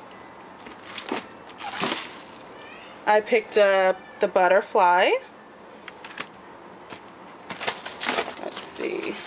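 A plastic package crinkles and taps as a hand handles it.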